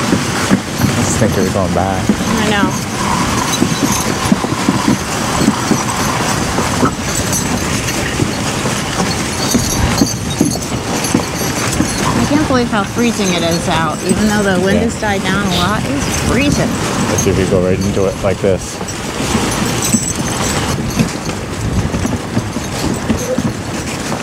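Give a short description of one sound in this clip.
Horses' hooves thud steadily on packed snow.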